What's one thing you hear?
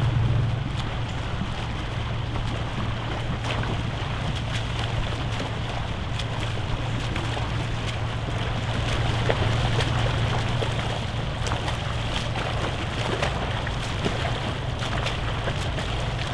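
Swimmers splash through the water with steady strokes.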